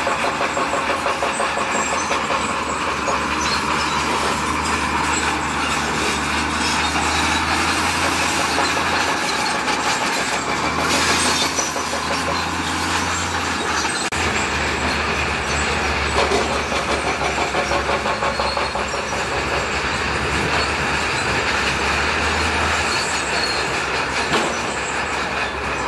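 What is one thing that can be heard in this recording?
A bulldozer engine rumbles steadily.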